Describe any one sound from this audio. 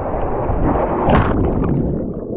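A body splashes into a pool.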